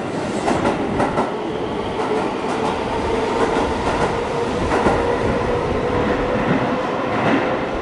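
Wheels screech with a steady high whine.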